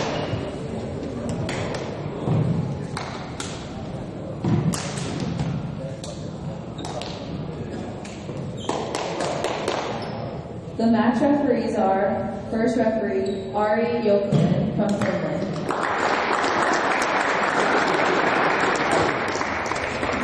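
Young players call out to each other across a large echoing hall.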